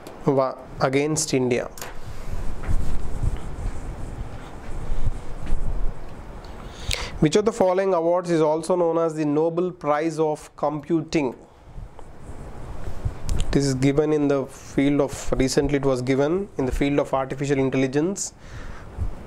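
A man speaks calmly and clearly into a close microphone, explaining.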